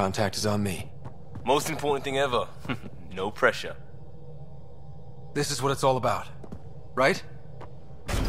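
A young man speaks with animation, heard through a microphone.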